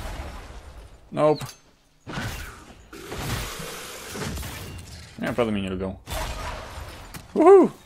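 Magic blasts crackle and whoosh in bursts.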